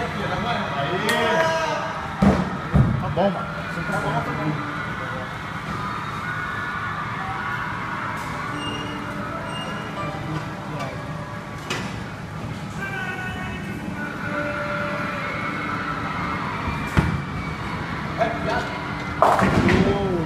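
A bowling ball rolls down a lane and crashes into pins.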